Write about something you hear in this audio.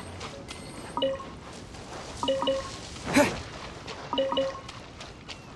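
Short bright chimes ring as items are picked up.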